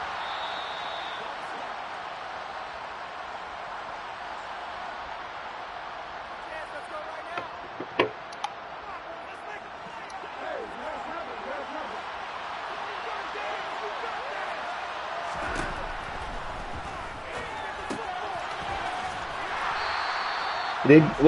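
A large stadium crowd cheers and roars steadily, swelling near the end.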